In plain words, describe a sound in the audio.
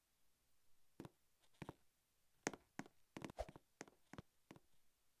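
Soft taps sound on a phone's touch keyboard.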